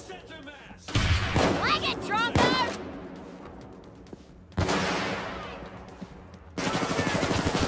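Loud shotgun blasts go off with a ringing echo.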